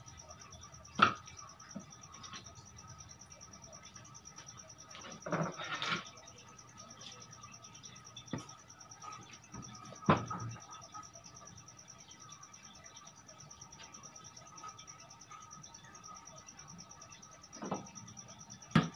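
Wood knocks against wood as a board is handled.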